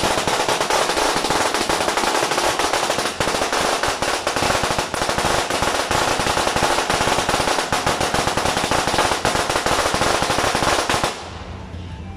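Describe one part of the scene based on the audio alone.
Firecrackers crackle and pop rapidly nearby.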